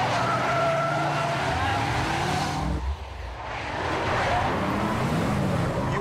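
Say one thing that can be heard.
A car engine roars as it speeds up.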